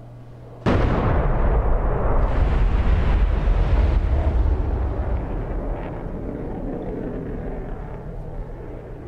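Bombs explode with a deep, rumbling boom that slowly fades.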